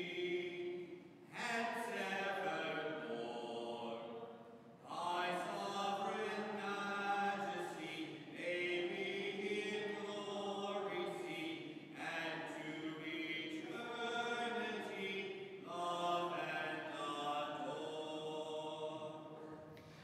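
A man chants in a steady sung voice, echoing in a large hall.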